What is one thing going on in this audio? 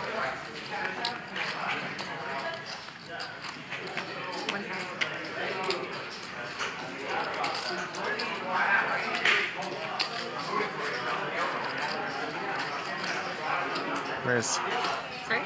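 Poker chips clack together as they are pushed across a table.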